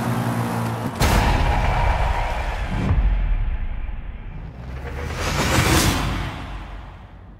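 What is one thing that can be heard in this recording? A car engine revs and whooshes past.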